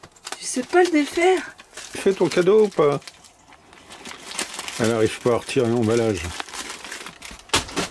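A paper bag crinkles and rustles as a dog tugs at it.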